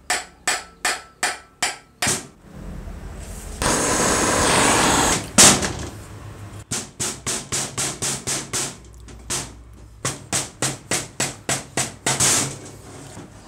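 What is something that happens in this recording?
A hammer bangs repeatedly on a metal motor casing.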